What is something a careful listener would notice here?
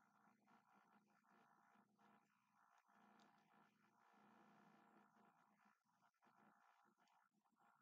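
A young man bites his fingernails close by.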